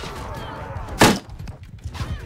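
A blade strikes with a sharp, heavy clang.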